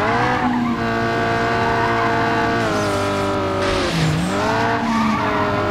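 A racing car engine roars at high revs, dipping in pitch and then climbing again.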